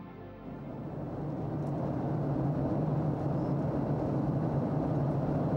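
An aircraft engine drones steadily inside the cabin.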